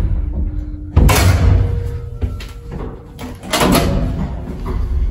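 Elevator doors slide and clunk shut.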